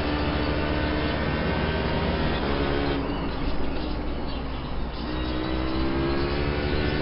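A racing car engine roars through the speakers, its pitch rising and dipping as it shifts gears.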